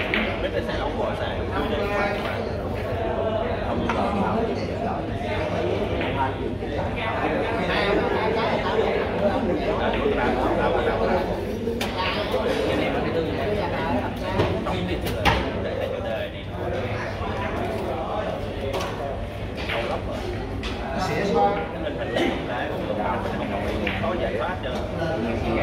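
Billiard balls click sharply against each other.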